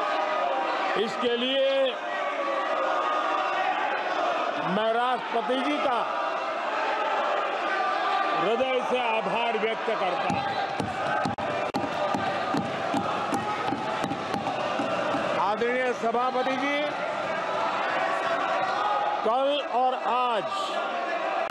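An elderly man speaks forcefully into a microphone in a large echoing hall.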